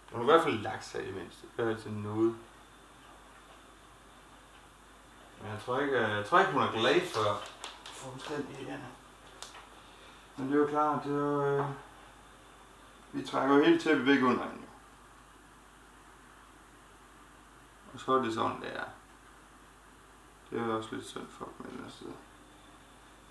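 A middle-aged man speaks calmly in short bursts, close by.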